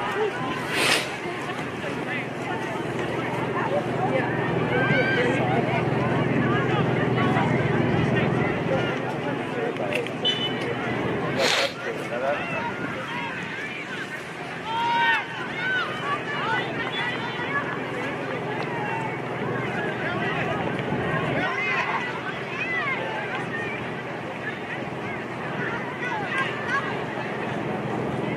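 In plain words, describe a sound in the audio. Many voices of spectators and players shout and call out across an open field outdoors.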